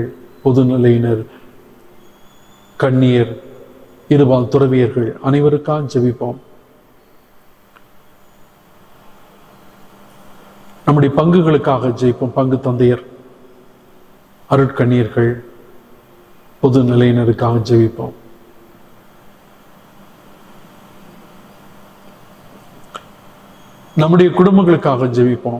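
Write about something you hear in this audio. An elderly man speaks calmly into a microphone, in phrases with long pauses.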